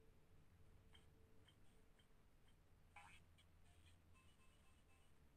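Short electronic chimes ping in a steady rhythm as a score tallies up.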